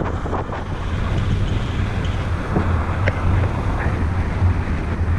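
Strong wind roars and buffets steadily, as if in flight outdoors.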